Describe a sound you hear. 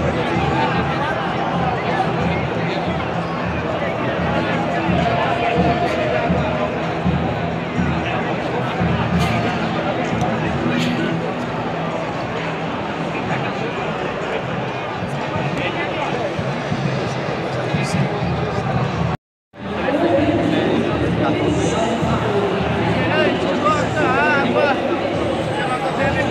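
A large stadium crowd chatters and murmurs all around, echoing in the open air.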